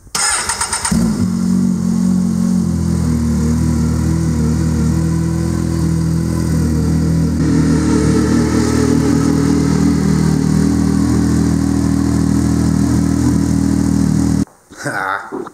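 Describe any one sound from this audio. An engine starts and idles with a steady low rumble.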